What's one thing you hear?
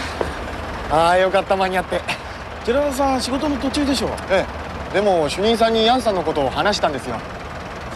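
A man talks cheerfully, close by.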